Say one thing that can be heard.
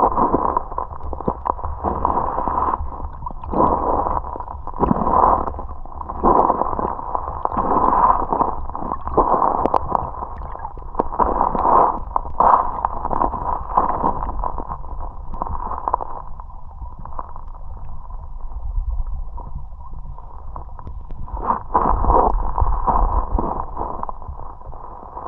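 Water rushes and gurgles around the microphone underwater, with muffled bubbling pulses.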